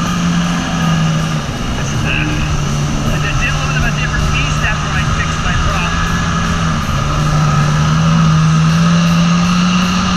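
A jet ski engine drones loudly and steadily, rising and falling in pitch.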